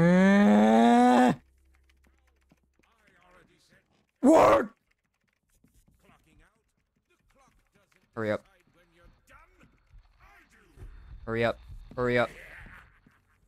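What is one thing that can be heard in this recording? A young man speaks loudly and with animation into a close microphone, in short bursts.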